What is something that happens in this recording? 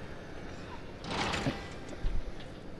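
A heavy door slides open.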